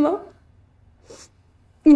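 A young woman sniffles while crying.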